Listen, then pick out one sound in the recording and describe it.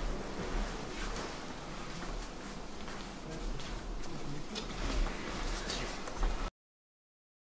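Footsteps shuffle softly across straw mats.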